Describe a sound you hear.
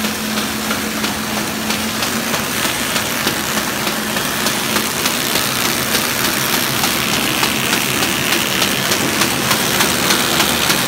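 Rollers whir as paper runs through a machine.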